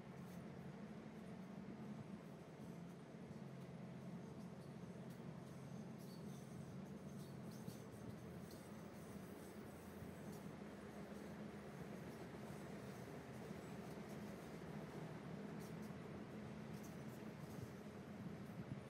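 Railcar wheels clatter over rail joints.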